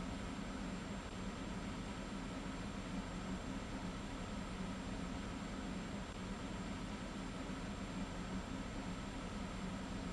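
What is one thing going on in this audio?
A subway train idles with a steady low electric hum.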